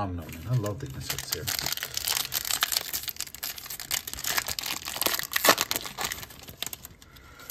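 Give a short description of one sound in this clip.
A foil wrapper crinkles and tears as it is ripped open.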